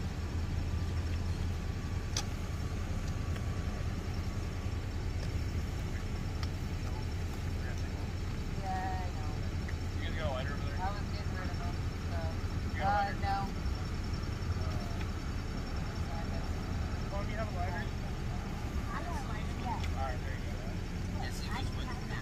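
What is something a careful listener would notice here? A car engine idles with a low steady hum.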